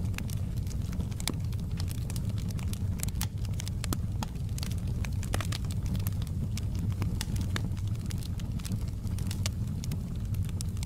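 A wood fire crackles and pops steadily.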